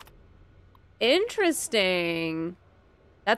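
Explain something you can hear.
A young woman exclaims with animation through a microphone.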